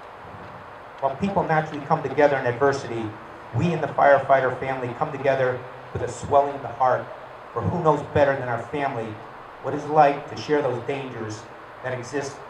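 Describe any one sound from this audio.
An older man speaks slowly and solemnly through a microphone and loudspeakers outdoors.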